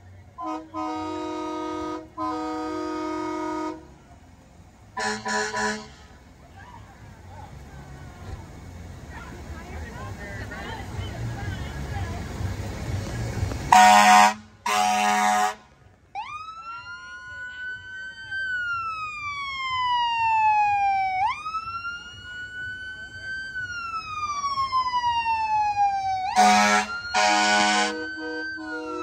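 A fire truck's air horn blasts loudly several times.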